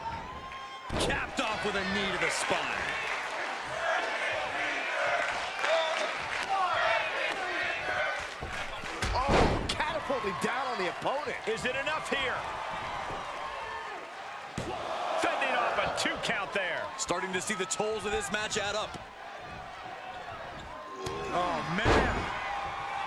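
Bodies slam hard onto a wrestling mat.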